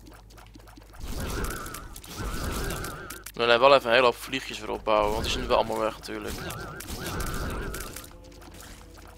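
Wet splats and growls of a video game fight burst out in quick succession.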